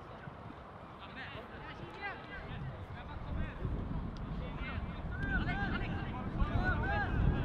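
Young men shout to each other across an open field, some way off.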